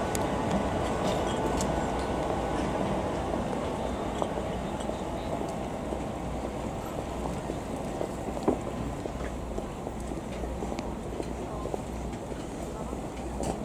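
A tram rumbles slowly along the rails.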